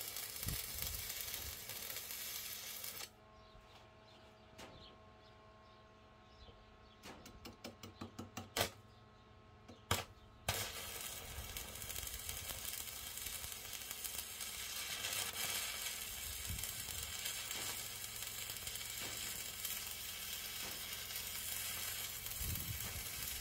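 An electric welding arc crackles and hisses steadily.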